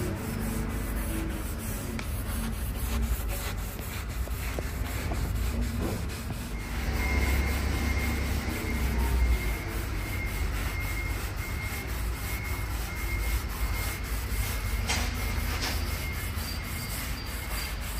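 A cloth rubs softly across a wooden board.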